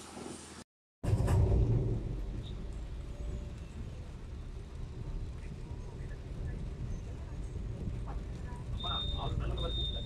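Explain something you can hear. Rain patters on a car windshield.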